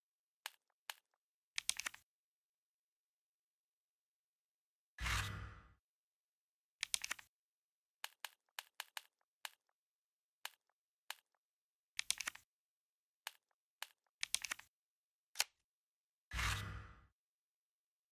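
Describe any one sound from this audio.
Short electronic menu clicks and whooshes sound now and then.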